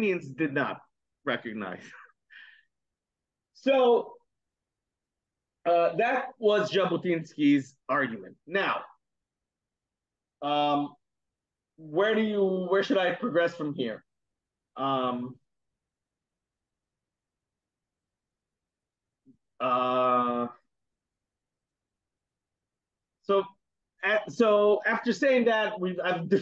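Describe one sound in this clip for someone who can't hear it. A man speaks with animation over an online call, pausing often.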